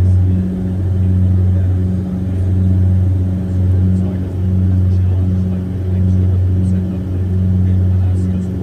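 A propeller engine drones loudly and steadily, with a slow pulsing throb.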